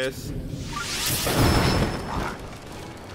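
A fire explosion bursts with a loud whooshing roar.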